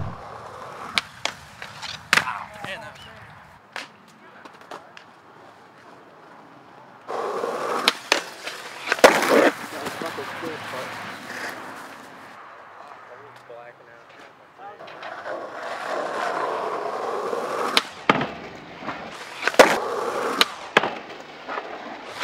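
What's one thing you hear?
A skateboard slides along a metal handrail.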